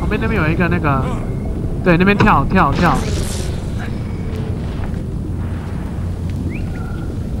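Lava rumbles with a low, steady roar.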